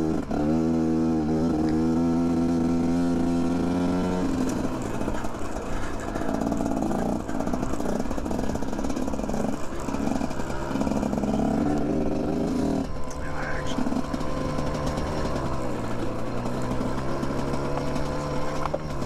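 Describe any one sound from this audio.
A dirt bike engine drones and revs up and down close by.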